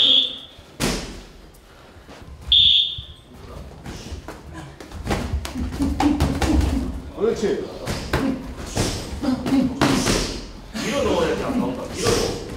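Boxing gloves thud against each other in quick punches.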